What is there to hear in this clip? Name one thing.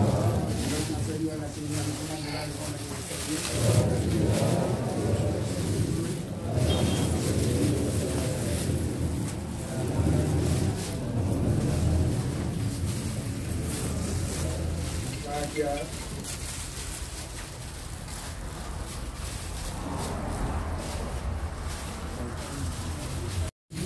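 A crowd of men and women chatter nearby in a room.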